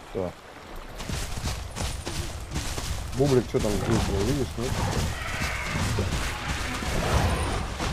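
A river rushes and splashes over stones.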